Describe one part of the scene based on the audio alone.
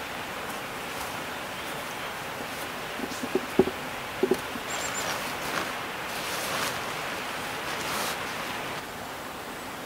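A sleeping bag rustles as someone shifts inside a tent.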